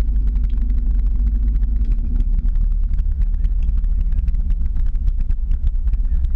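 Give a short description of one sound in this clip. Tyres roll steadily over a paved road with a low rumble.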